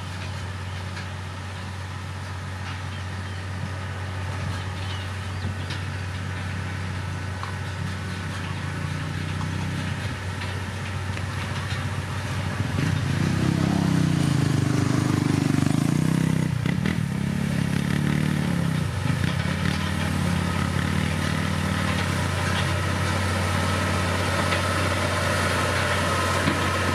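Soil scrapes and crumbles under a grader blade.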